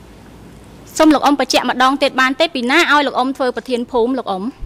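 A young woman speaks steadily into a microphone.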